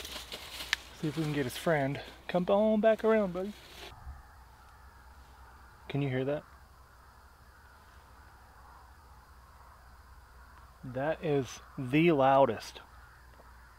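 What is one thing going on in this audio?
A man talks quietly up close.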